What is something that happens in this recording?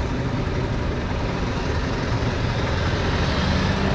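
A jeepney engine idles and rumbles on the street.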